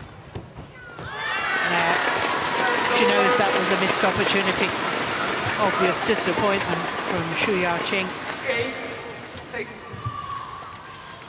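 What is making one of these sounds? A large crowd cheers loudly in an echoing hall.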